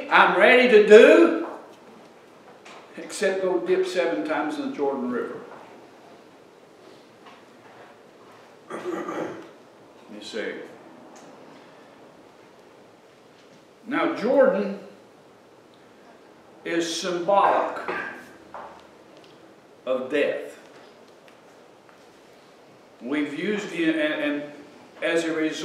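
An older man speaks calmly through a microphone in a room with a slight echo, pausing often.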